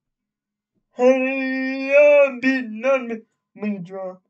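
A young man speaks loudly and with animation into a close microphone.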